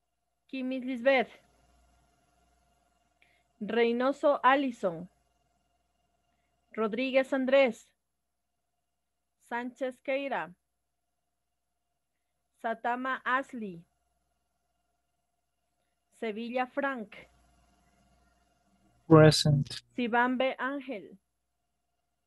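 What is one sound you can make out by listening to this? A young woman speaks in short phrases over an online call, with pauses between them.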